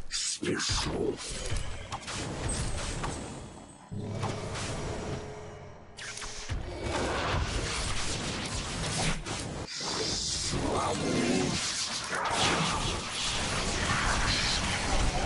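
Magic spells crackle and whoosh in a battle.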